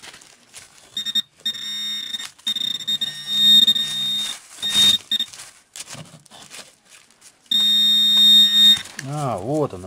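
A handheld metal detector gives off a high, steady buzz in bursts.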